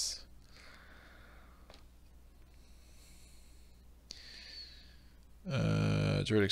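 Playing cards slide and rustle on a table.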